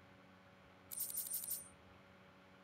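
A bright chime rings briefly.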